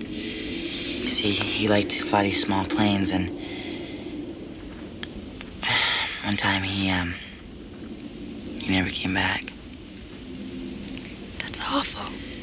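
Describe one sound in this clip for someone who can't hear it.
A young woman speaks quietly, close by.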